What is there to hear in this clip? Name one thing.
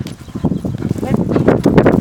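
A dog barks loudly close by.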